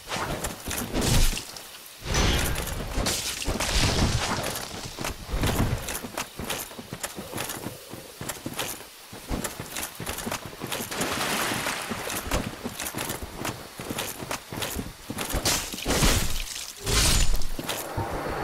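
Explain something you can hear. A sword swings and strikes with sharp metallic hits.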